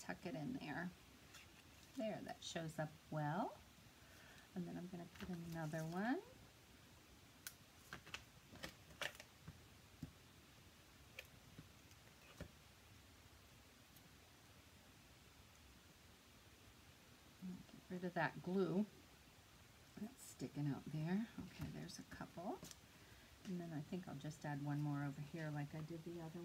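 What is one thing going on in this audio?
Paper rustles and taps softly as hands handle it.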